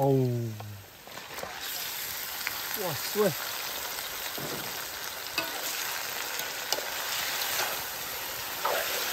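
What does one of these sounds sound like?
Meat drops into hot oil and sizzles loudly.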